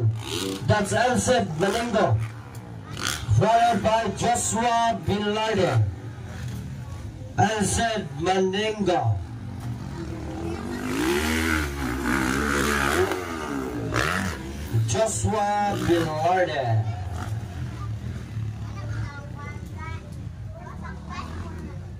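Dirt bike engines roar and rev.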